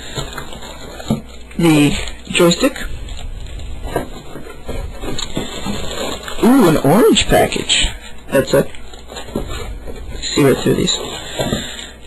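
Cardboard flaps scrape and thump as a box is handled up close.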